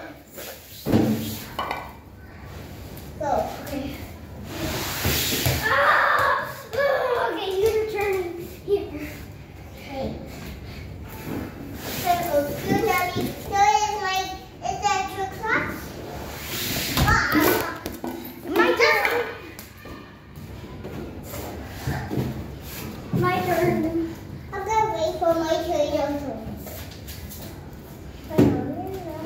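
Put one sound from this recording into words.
Young children talk and shout excitedly nearby.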